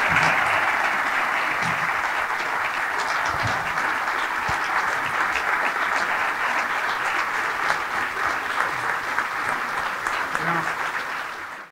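A crowd applauds loudly in a large room.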